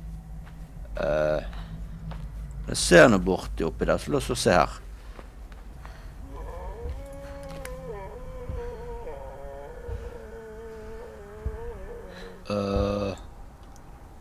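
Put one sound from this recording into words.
A young man speaks into a microphone in short bursts, close up.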